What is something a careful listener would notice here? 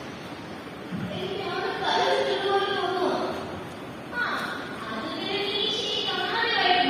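A young woman sings loudly and dramatically into a microphone, heard through loudspeakers in an echoing room.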